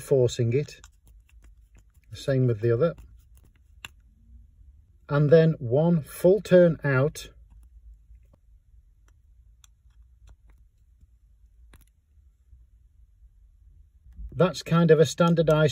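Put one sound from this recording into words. A screwdriver turns a small screw with faint scraping.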